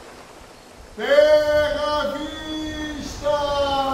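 An elderly man sings out loudly in an echoing hall.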